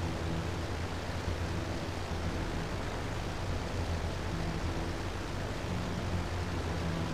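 Wind rushes past a plane in flight.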